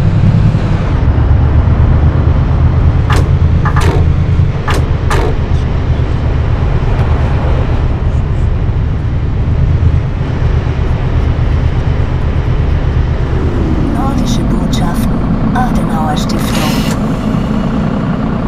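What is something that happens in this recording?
A bus engine rumbles steadily from close by.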